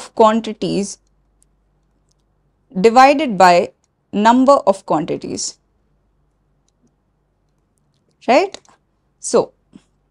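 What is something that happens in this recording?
A young woman speaks calmly into a close microphone, in short phrases with pauses.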